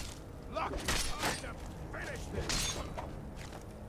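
Fire spells whoosh and burst into flames.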